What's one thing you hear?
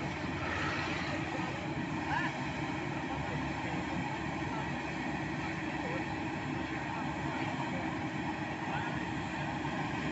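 A diesel dump truck idles with a rumble.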